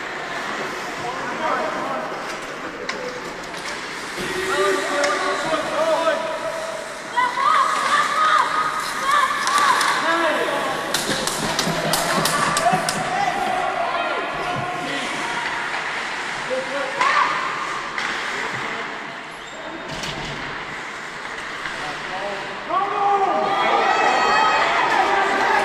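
Young men shout to each other across an echoing rink.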